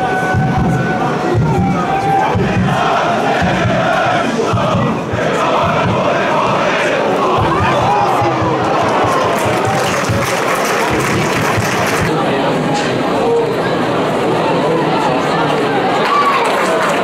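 A crowd of spectators cheers and chants loudly outdoors.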